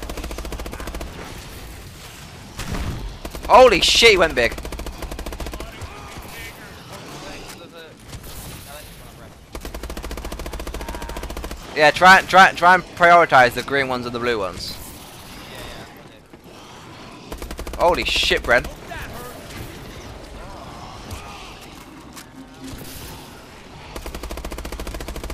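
Rapid gunfire rattles from a rifle.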